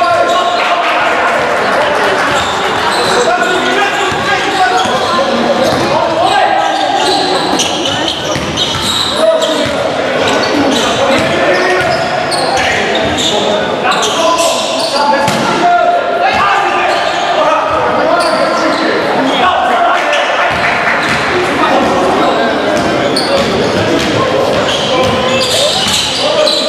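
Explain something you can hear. Sneakers squeak on a hard court in a large echoing hall.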